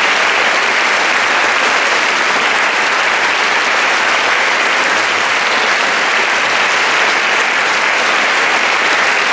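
An audience claps steadily in an echoing hall.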